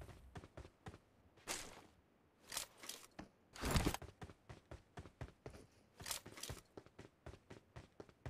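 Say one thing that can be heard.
Footsteps patter quickly on hard ground.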